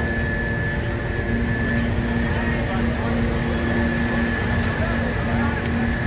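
Men talk among themselves outdoors at a distance.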